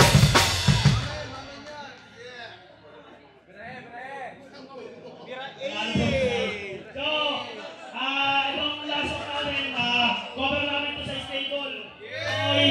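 A band plays loud music with electric guitar and bass.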